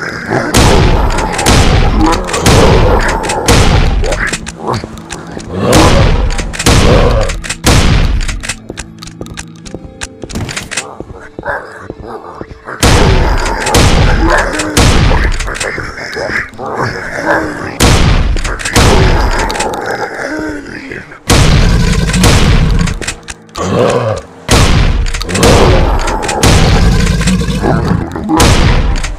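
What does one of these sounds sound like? Shotgun blasts ring out again and again.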